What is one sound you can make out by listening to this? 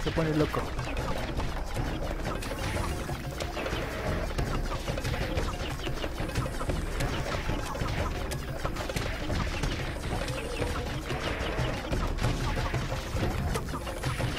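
Rapid laser shots fire again and again.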